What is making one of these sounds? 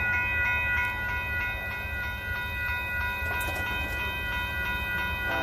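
A railroad crossing bell rings rapidly and steadily.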